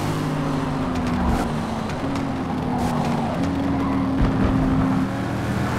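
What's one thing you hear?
A car engine roars and shifts down through the gears as it brakes.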